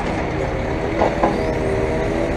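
Wooden logs knock together.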